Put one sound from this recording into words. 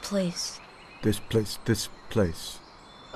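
A man speaks in a low, halting voice.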